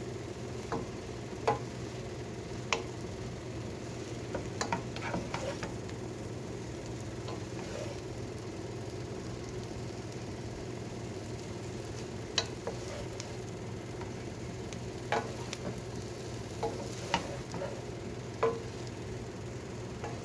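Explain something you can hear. Noodles sizzle in a hot pan.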